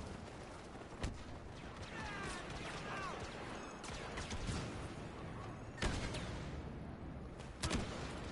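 Laser blasters fire in short, sharp bursts.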